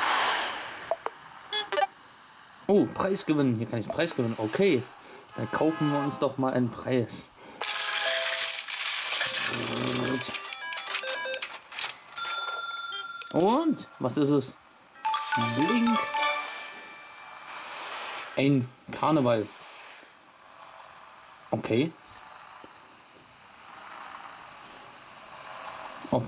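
A phone game plays short electronic jingles and blips through a small speaker.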